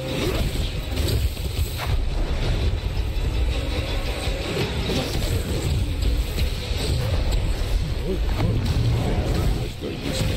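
Blows strike and thud repeatedly.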